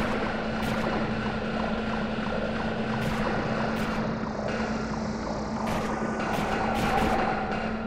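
Small flying insects buzz steadily.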